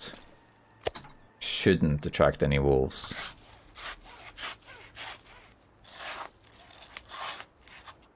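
A hand saw rasps through frozen meat in repeated strokes.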